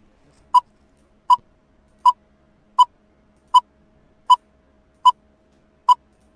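A game countdown timer beeps sharply at a steady pace.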